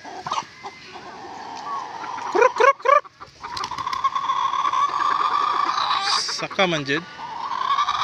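Hens cluck and squawk close by.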